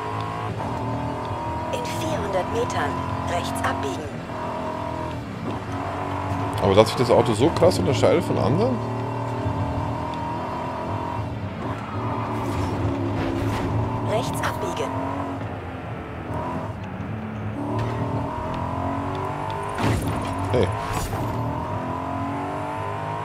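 A car engine roars steadily, rising and falling in pitch as it revs and shifts gears.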